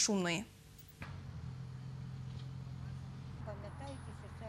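An excavator engine rumbles steadily.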